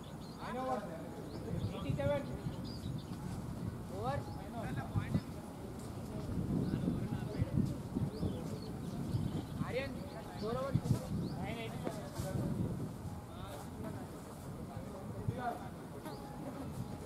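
Young men call out and shout encouragement outdoors.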